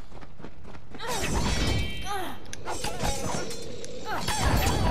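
Weapons swing and strike in a fight.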